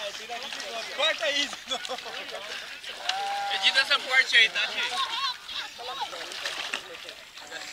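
A child splashes and kicks in shallow water.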